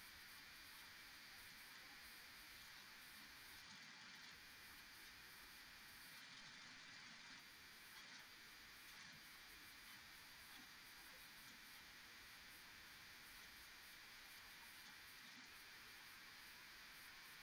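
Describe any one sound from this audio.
An elderly woman talks with animation over an online call.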